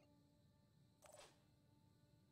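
A laser gun fires with a short, sizzling burst.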